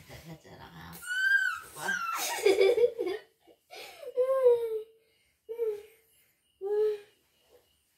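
A young woman laughs and squeals playfully close by.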